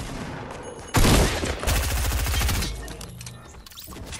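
Gunfire rings out in a short burst.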